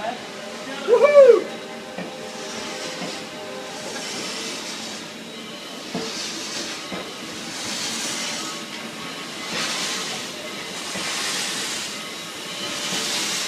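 A train rolls past close by with a steady rumble and rhythmic swishing.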